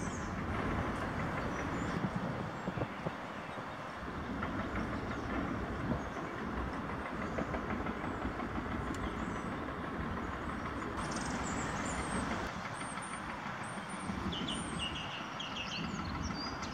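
A lorry engine idles with a low, steady rumble.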